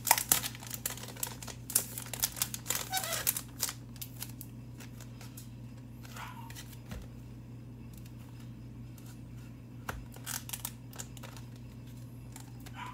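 A plastic card pack crinkles and rustles close by.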